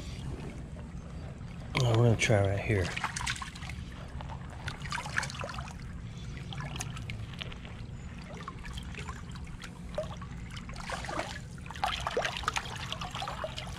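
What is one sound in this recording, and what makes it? A hand splashes and stirs in shallow water.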